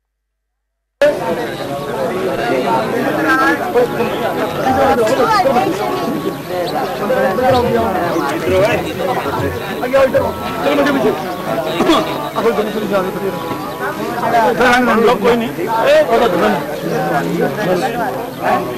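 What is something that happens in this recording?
A crowd of men talk and murmur close by, outdoors.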